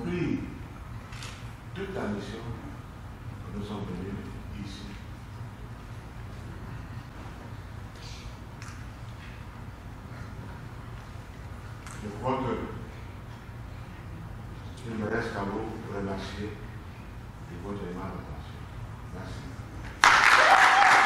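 A middle-aged man preaches with animation, pausing between phrases.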